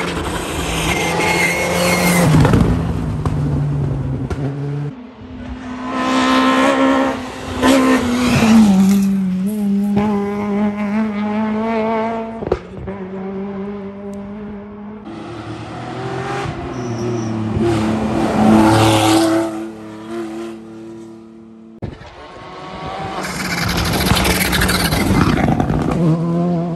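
Rally car engines roar and rev hard as cars speed past one after another.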